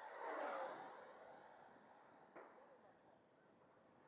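A small model airplane engine buzzes overhead and quickly fades into the distance.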